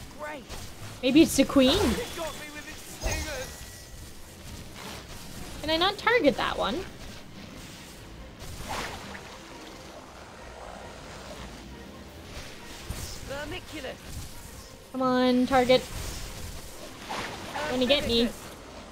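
A young woman talks animatedly close to a microphone.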